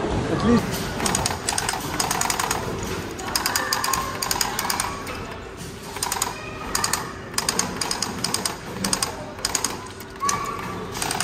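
Arcade game gunfire crackles in rapid bursts through loudspeakers.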